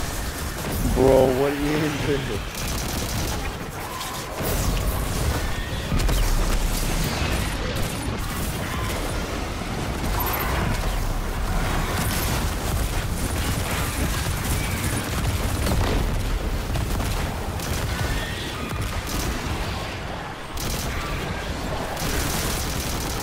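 Heavy blasts thump with deep rumbling.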